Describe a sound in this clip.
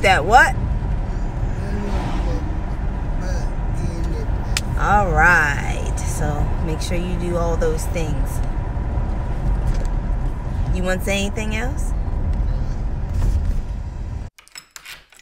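A car's engine and road noise rumble low and steady.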